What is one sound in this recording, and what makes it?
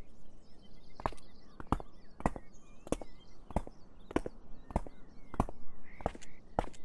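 A child's footsteps tap steadily on the ground.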